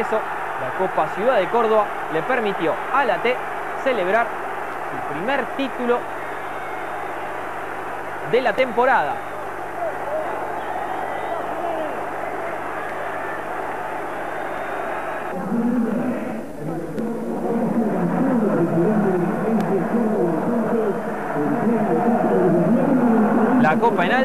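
A large crowd cheers and chants loudly in a stadium.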